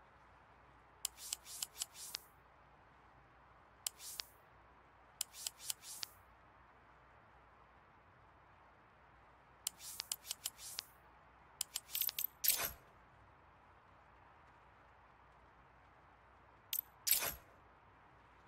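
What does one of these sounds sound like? Short sharp game menu clicks sound in quick bursts.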